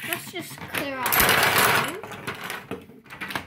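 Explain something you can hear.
Toy tops rattle and slide down a tilted plastic tray.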